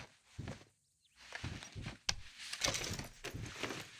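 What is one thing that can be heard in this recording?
A wooden chest lid shuts with a thump.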